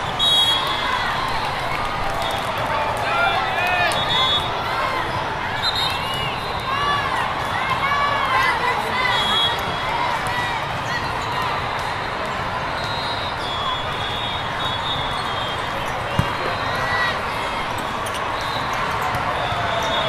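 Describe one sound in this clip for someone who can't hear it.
Sneakers squeak sharply on a court floor.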